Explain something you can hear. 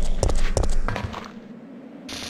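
Footsteps hurry across a stone floor.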